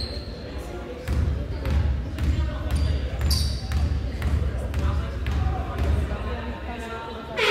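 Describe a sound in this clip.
A basketball bounces repeatedly on the court.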